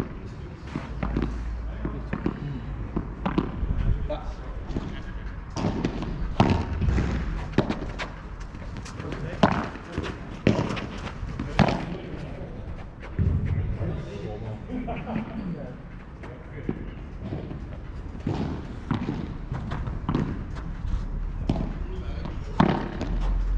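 A ball bounces on the court.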